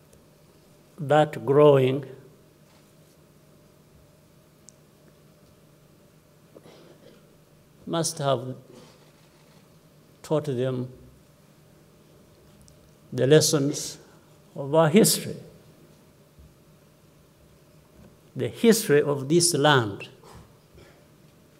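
A man speaks slowly and calmly into a microphone, with long pauses between short phrases.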